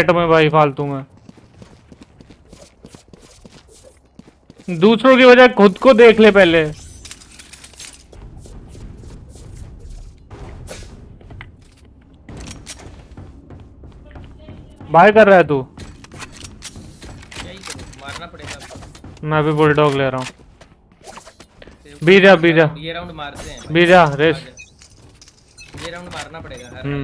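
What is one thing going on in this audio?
A young man talks with animation into a close microphone, in bursts.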